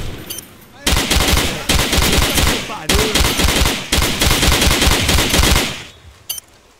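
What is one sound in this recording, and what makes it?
A rifle fires rapid bursts at close range.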